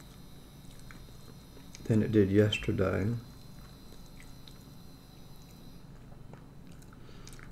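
A spoon scrapes and clinks against a bowl.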